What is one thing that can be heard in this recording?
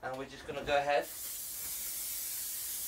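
A spray can hisses steadily.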